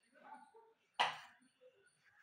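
A glass cup is set down on a metal saucer.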